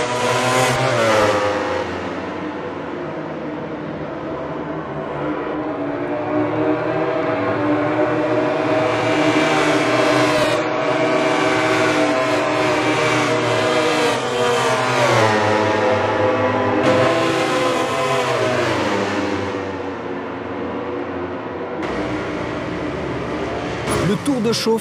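Motorcycle engines whine at high revs, rising and falling as the bikes race past.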